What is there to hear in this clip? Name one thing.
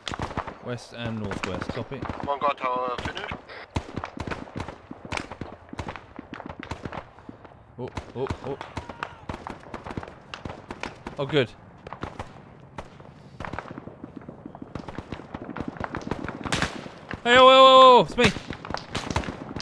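Footsteps crunch quickly over dirt and gravel.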